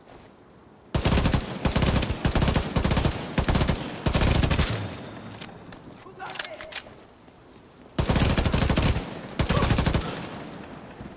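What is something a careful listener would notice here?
Rifle gunfire rattles in loud, rapid bursts.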